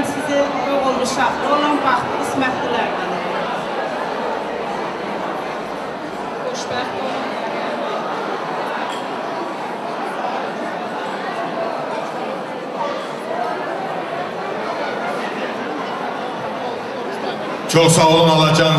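A woman speaks into a microphone, heard through loudspeakers in a large room.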